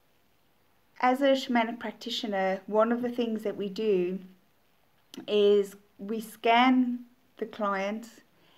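A woman speaks calmly and clearly, close to the microphone.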